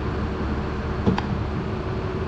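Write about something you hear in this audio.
Metal clanks once against metal.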